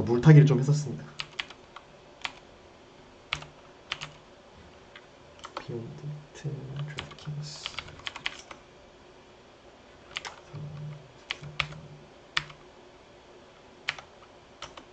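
Keyboard keys click in quick taps.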